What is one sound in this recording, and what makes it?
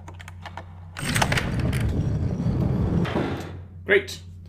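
A heavy metal hatch grinds and scrapes open.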